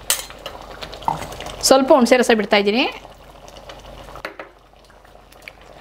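Liquid is poured into a pot of thick curry.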